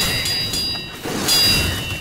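A flamethrower from a game roars.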